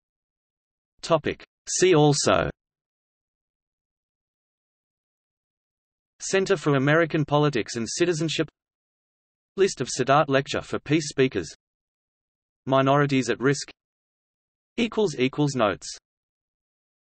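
A middle-aged man speaks calmly and close by, with pauses between phrases.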